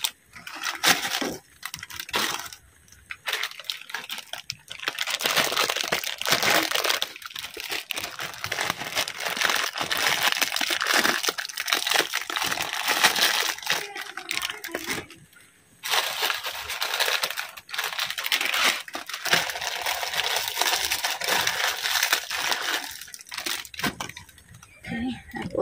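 Water bubbles and simmers in a pot.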